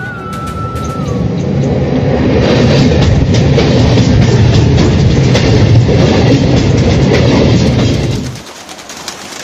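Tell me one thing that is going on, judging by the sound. A train rumbles loudly over a steel bridge.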